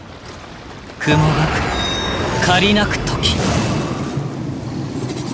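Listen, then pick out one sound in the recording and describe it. A loud magical blast whooshes and rumbles.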